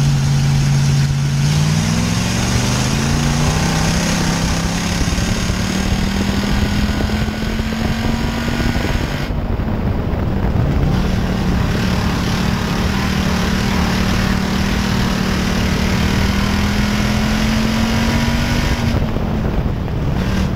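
A race car engine roars loudly up close, rising and falling in pitch.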